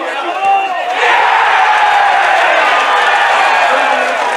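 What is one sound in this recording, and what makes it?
A crowd of spectators cheers outdoors.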